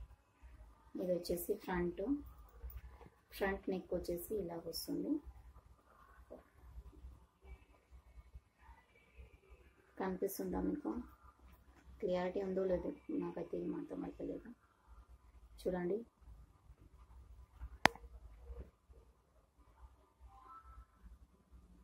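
Stiff embroidered fabric rustles as hands turn it over.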